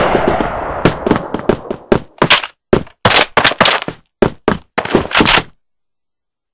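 Bursts of rapid gunfire crack close by.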